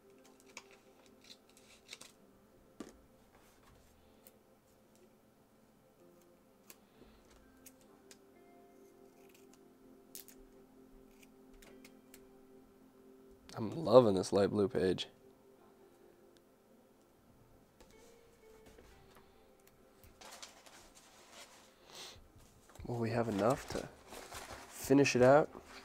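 Paper rustles softly as hands handle stickers.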